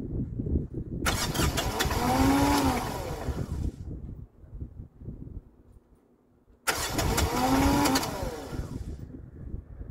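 A tractor's starter motor cranks in whining bursts.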